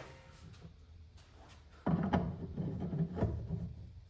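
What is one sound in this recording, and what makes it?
A metal chuck clinks as it is fitted onto a lathe.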